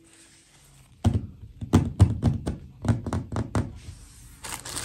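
Fingers tap on a hard tabletop.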